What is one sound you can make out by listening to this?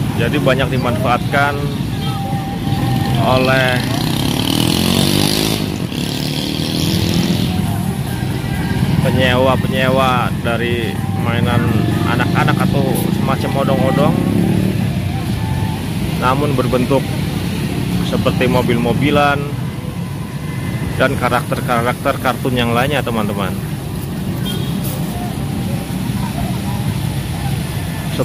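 Motorcycles and cars drive past on a busy street.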